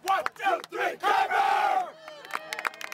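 A group of young men shout together in a loud chant.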